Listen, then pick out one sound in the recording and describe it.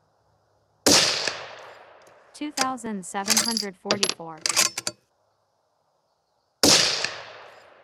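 A rifle fires loud shots outdoors, each ringing out and fading.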